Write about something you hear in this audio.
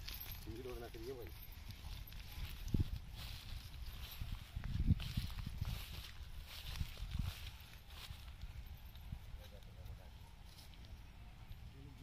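A woman's footsteps swish and thud softly through grass.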